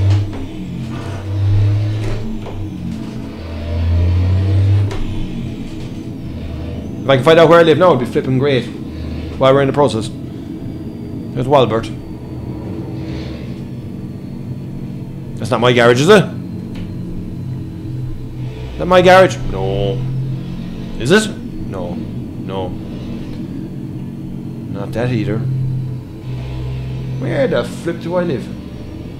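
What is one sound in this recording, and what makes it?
A truck engine hums low and steadily.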